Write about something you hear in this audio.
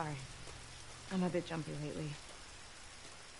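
A young girl apologises calmly.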